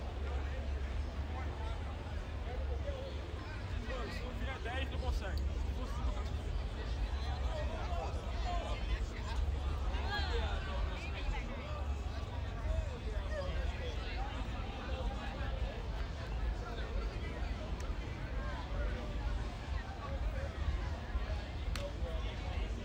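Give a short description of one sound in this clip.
A crowd of young men and women chatters outdoors.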